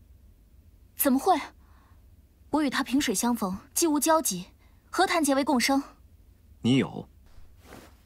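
A young woman asks questions with concern.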